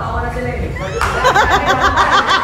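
A man laughs loudly up close.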